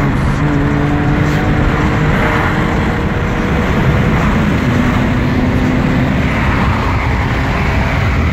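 Wind and road noise rush past a car at speed.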